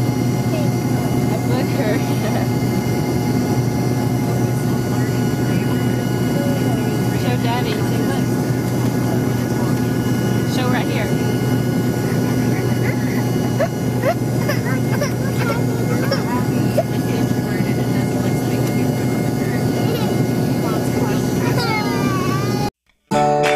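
A woman speaks softly and playfully to a child.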